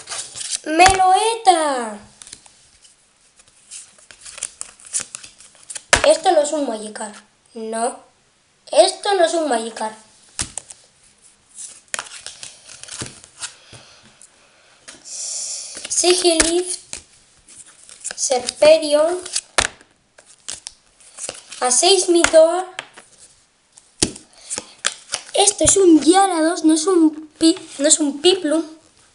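Playing cards rustle and slide against each other in hands.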